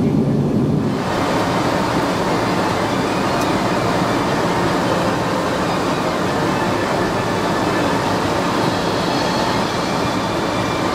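Air hisses steadily through an airliner cabin.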